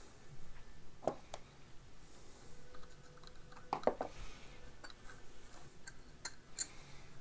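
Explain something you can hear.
A screwdriver taps and scrapes against metal parts.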